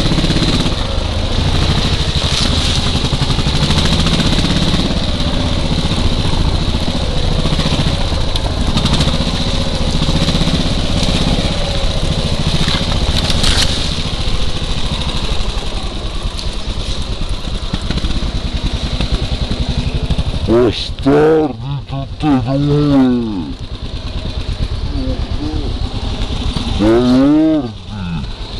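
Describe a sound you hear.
A dirt bike engine rumbles and revs close by.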